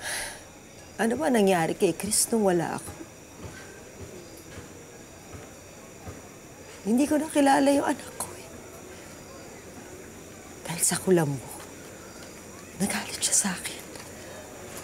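A woman speaks tearfully and brokenly, close by.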